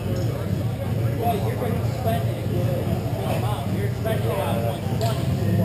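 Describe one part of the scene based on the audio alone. Distant voices of people echo faintly in a large hall.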